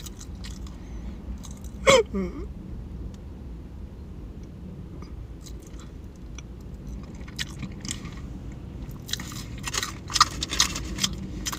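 A man chews food with soft crunching and smacking sounds.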